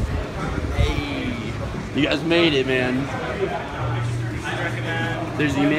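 A crowd murmurs and chatters in a noisy echoing hall.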